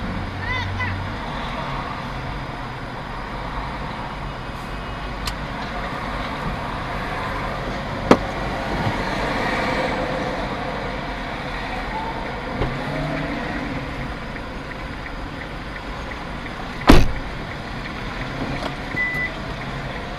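Street traffic rumbles steadily nearby.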